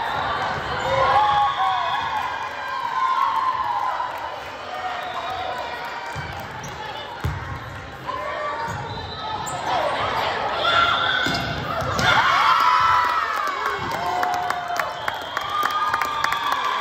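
Players and spectators call out and chatter in a large echoing hall.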